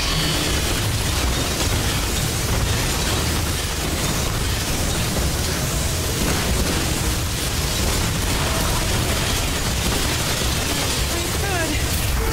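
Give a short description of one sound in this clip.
Energy beams hum and crackle loudly.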